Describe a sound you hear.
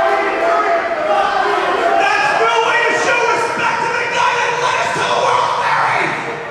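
A man speaks loudly into a microphone over a loudspeaker, echoing in a large hall.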